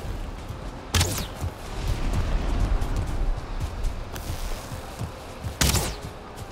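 Magic blasts whoosh and crackle in a game.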